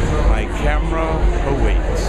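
An elderly man speaks close to the microphone.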